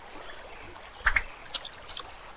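A fishing float splashes into water.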